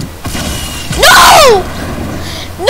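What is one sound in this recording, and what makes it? A video game's energy beam hums and whooshes.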